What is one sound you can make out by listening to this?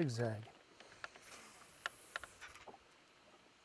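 A fishing line whizzes off a reel during a cast.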